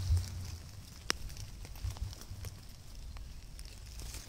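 Dry leaves rustle and crackle as a hand pushes through low plants.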